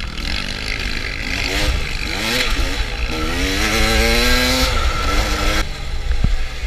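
A dirt bike engine roars close by, rising and falling in pitch as it revs.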